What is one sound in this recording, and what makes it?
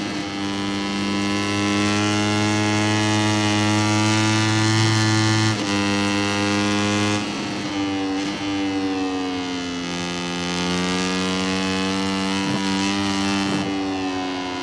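A racing motorcycle engine screams at high revs, shifting gears and dropping in pitch into corners.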